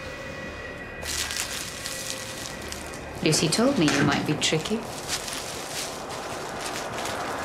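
Leaves of a bouquet rustle as a man handles it.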